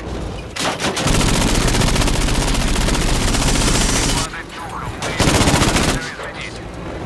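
A machine gun fires in loud rapid bursts.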